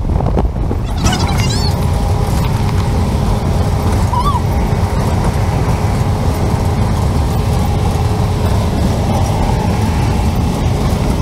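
A car engine and tyres hum steadily on the road.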